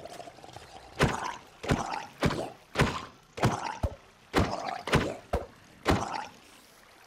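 Blows strike a creature again and again.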